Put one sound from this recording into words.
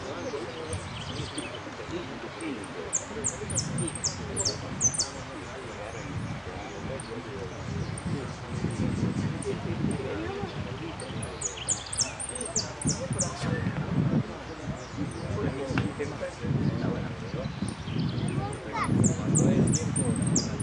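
A small caged bird chirps in high, rapid bursts.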